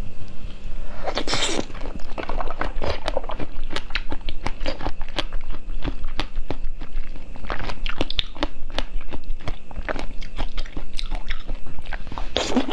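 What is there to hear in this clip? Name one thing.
A young woman bites and crunches crisp fruit seeds close to a microphone.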